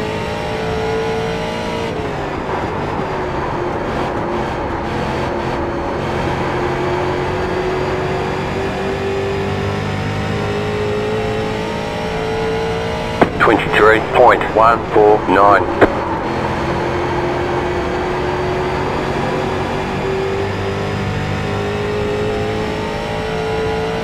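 A racing car engine roars steadily, its pitch rising and falling through the laps.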